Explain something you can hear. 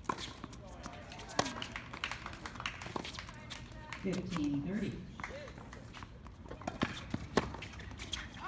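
A tennis racket sharply strikes a ball.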